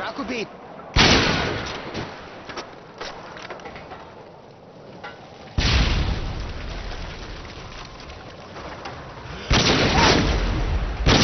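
A sniper rifle fires loud shots that echo and fade.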